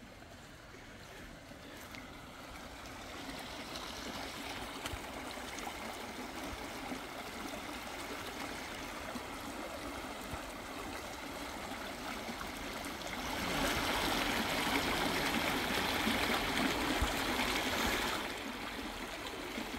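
A small stream flows and gurgles close by.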